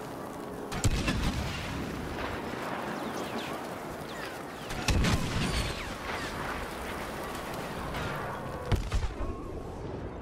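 Laser blasters fire in sharp bursts.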